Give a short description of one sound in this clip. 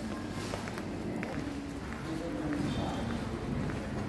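A shopping cart rattles as it rolls over a tiled floor.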